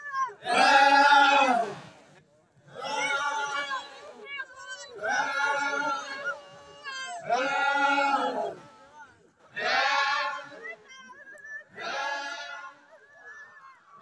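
A large crowd of young men and women sings together in loud, drawn-out phrases outdoors.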